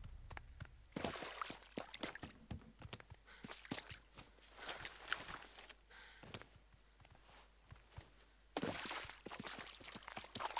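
Footsteps crunch and scuff on the ground at a quick pace.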